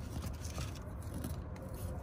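A hand presses loose soil into a small plastic pot.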